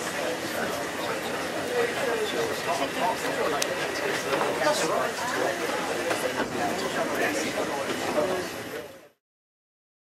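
A tram rattles and clatters along its track.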